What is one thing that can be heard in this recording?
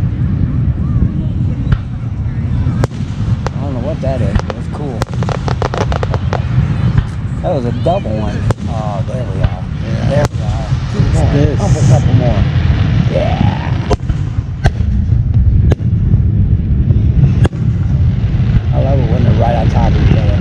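Fireworks burst with sharp bangs and crackles at a distance.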